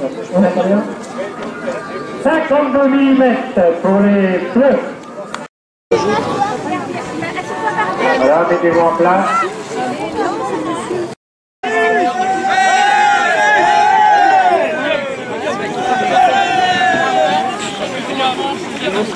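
A group of young men shout and talk loudly outdoors.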